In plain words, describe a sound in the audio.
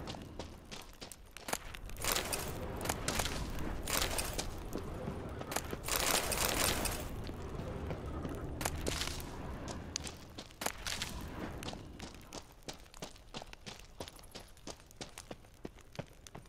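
Footsteps crunch on a dirt floor.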